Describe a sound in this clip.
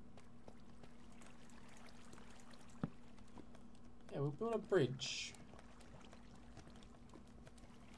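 Water flows and trickles steadily.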